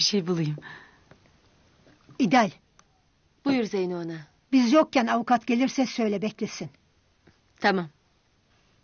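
An elderly woman speaks calmly and earnestly, close by.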